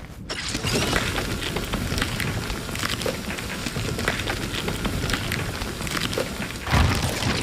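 A tool strikes wood in quick, repeated blows.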